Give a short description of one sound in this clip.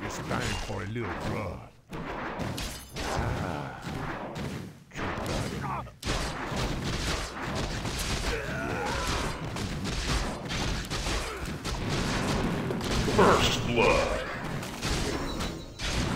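Video game combat sounds clash, with weapon hits and spell effects.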